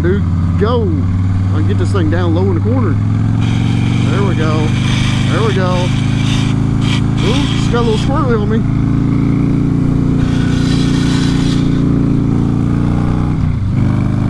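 A motorcycle engine drones steadily at cruising speed.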